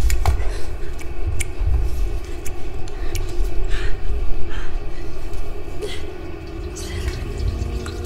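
A body bumps against a hard wall.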